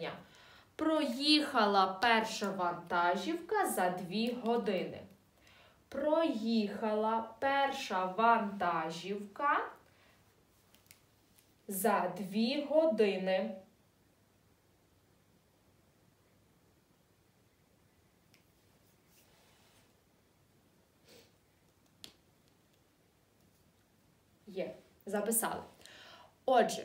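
A young woman speaks calmly and clearly into a close microphone, with pauses.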